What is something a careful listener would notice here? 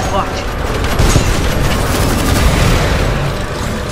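An explosion booms and rumbles deeply.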